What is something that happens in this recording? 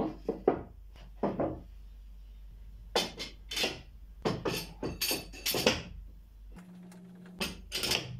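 Wooden boards knock and clatter as they are laid down.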